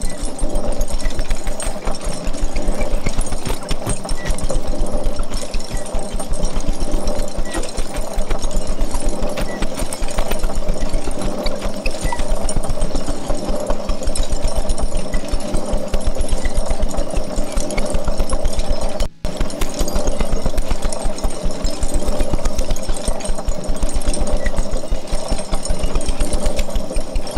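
Electronic music drones and pulses steadily, with a low throbbing beat.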